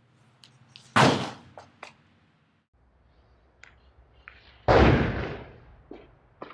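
A metal gate clangs shut with a ringing echo.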